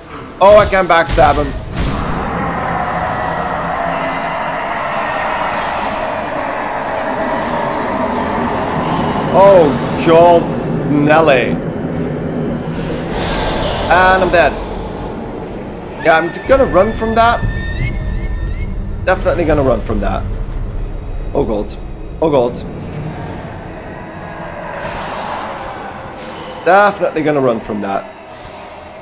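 Eerie ghostly wails rise and fall, again and again.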